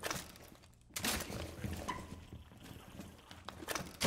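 A metal device is set down on a wooden floor with a clunk.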